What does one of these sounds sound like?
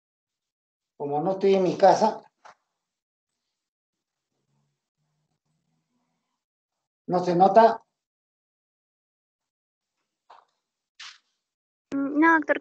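An elderly man speaks calmly through an online call, in short bursts.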